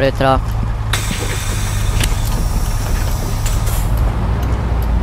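A bus door hisses shut with a burst of air.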